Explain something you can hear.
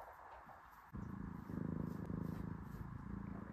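A cat purrs softly up close.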